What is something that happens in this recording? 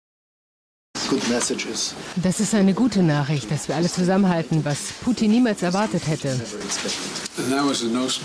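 Two elderly men talk and laugh together.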